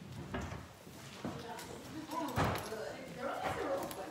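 Footsteps shuffle on a carpeted floor.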